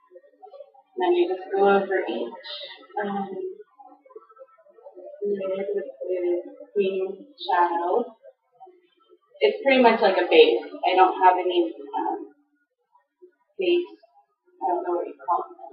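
A young woman talks close by, calmly and chattily.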